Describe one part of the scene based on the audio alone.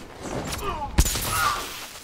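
A heavy body slams to the ground with a loud thump.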